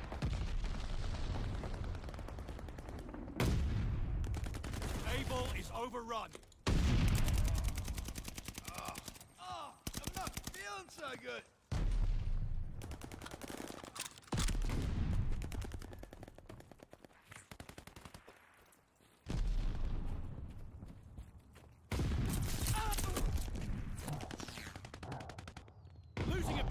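Rapid gunfire bursts loudly in quick repeated volleys.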